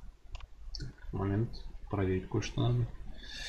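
A man speaks calmly and close through a microphone.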